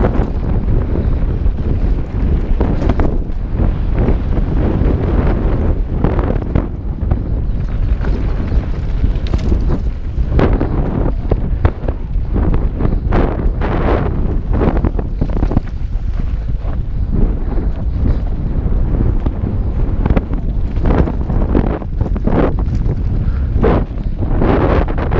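Wind rushes loudly past a helmet microphone.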